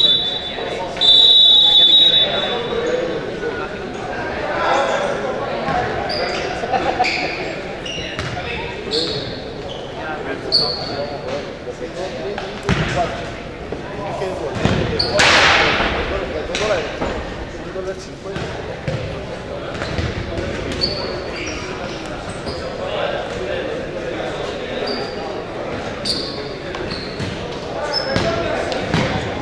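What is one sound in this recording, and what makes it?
A ball thuds as players kick it.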